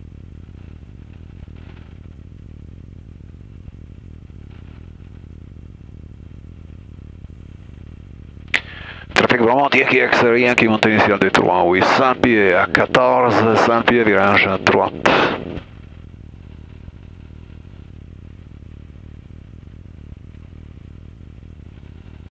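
A small plane's engine drones steadily.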